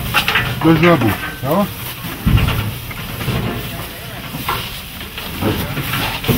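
Cattle munch and rustle through hay close by.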